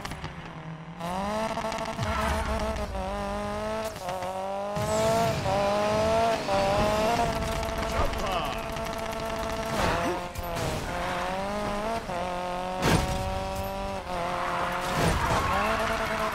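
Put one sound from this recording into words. A car engine roars as the car speeds away and shifts through gears.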